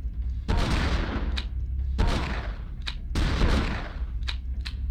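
A handgun fires several loud shots that echo down a hallway.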